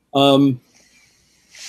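An elderly man speaks briefly over an online call.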